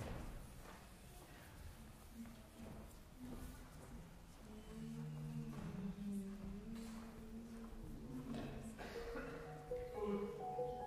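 A cello plays slow, soft notes in a large echoing hall.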